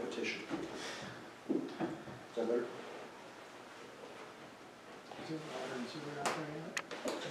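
A man speaks in an echoing room, standing a little way off.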